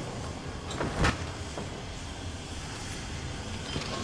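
A heavy door slides open with a metallic clank.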